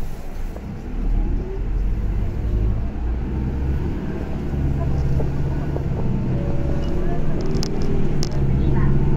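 A bus engine grows louder and deeper as the bus pulls away.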